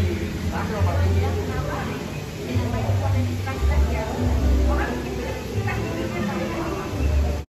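Young adults chat in low voices at nearby tables.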